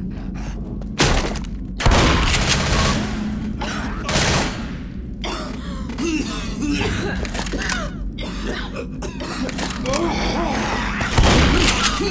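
A shotgun fires with loud, sharp blasts.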